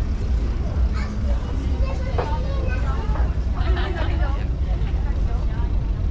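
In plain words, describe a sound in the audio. People chatter at tables nearby.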